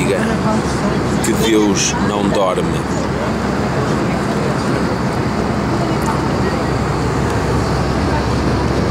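A steady low drone of aircraft engines hums throughout.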